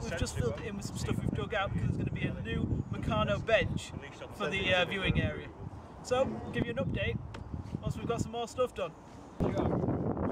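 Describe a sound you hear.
A man talks calmly outdoors, close by.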